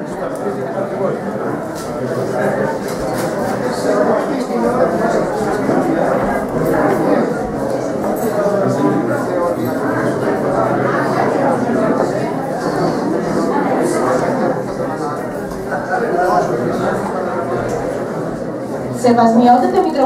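A crowd of people chatters in an echoing room.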